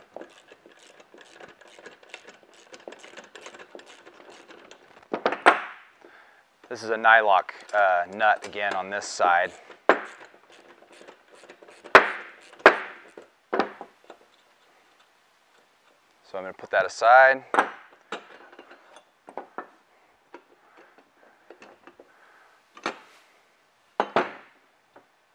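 Small plastic and metal parts click and knock on a table.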